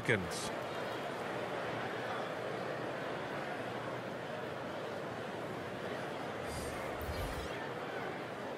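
A large crowd murmurs steadily in a big echoing arena.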